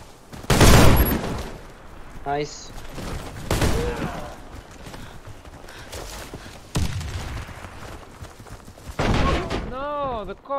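Gunshots ring out in loud bursts.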